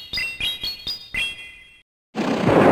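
Bright electronic chimes ring out in quick rising notes.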